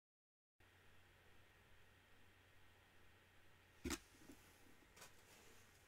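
A plastic card rustles and taps as a hand handles it.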